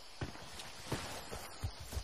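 Gunshots crack in short bursts.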